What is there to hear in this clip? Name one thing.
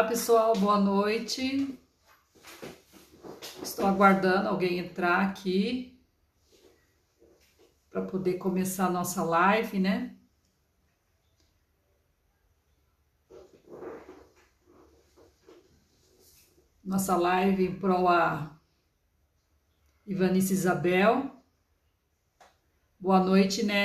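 An older woman speaks calmly and close to the microphone, with pauses.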